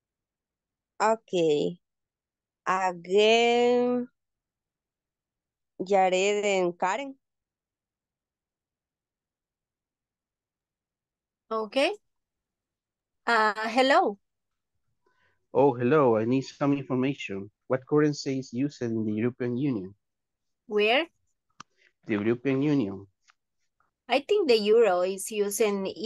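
A man speaks calmly over an online call, in short phrases with pauses.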